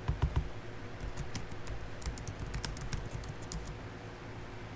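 Keys click quickly on a keyboard.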